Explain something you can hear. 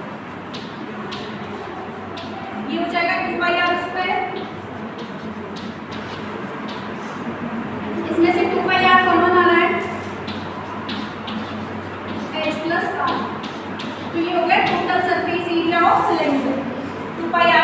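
Chalk taps and scratches on a chalkboard.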